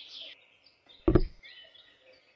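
A small plastic toy is set down with a soft tap.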